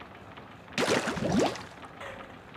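A wet splash of ink bursts and gurgles.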